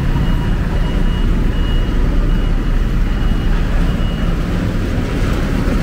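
A bus engine hums close by.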